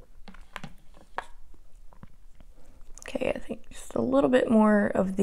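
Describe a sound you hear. A plastic case clicks and rattles in a young woman's hands.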